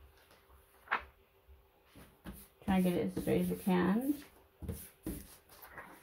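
Hands rub and smooth paper onto a sticky mat.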